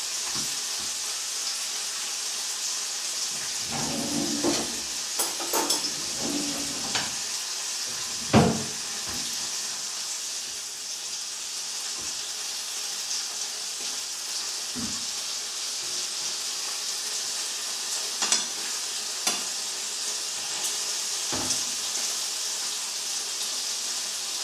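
Meat sizzles steadily in a frying pan.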